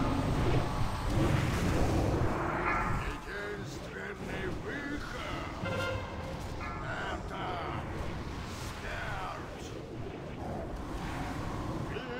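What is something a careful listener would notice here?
Magic blasts and battle effects rumble and crackle.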